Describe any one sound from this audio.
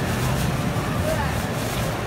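A plastic bag rustles in a hand.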